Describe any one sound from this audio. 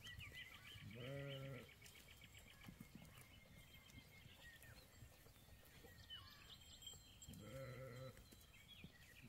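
Sheep bleat in a large flock.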